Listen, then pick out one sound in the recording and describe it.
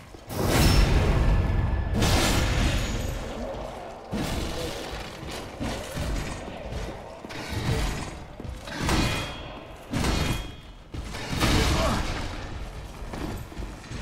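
Heavy armoured footsteps thud on stone.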